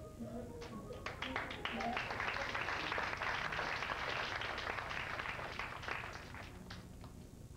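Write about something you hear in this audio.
An audience claps and applauds in an echoing hall.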